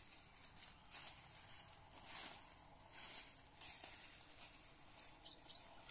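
Hands rustle through dry leaves on the ground.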